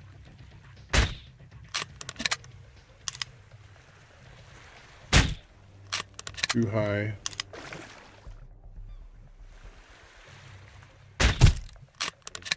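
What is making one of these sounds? A crossbow fires with a sharp snap.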